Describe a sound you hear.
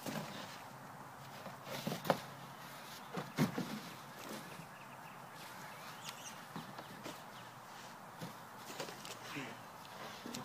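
Cardboard boxes thump and scrape as they are moved.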